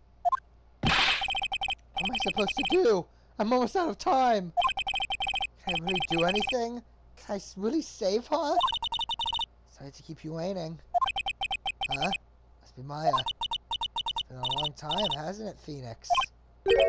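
Soft electronic blips chatter in quick bursts.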